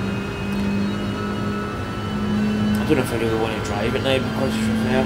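A race car engine drones steadily at speed.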